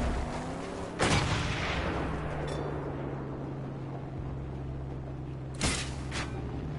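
A heavy metal crash bangs as a car lands hard.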